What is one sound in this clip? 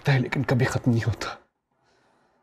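A man speaks urgently and close by.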